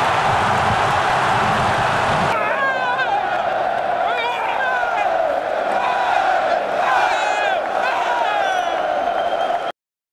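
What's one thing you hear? A large crowd roars and cheers loudly outdoors.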